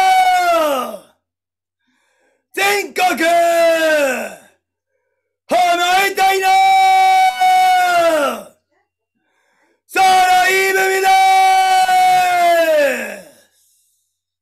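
A young woman chants loudly in long, drawn-out calls, close to a microphone.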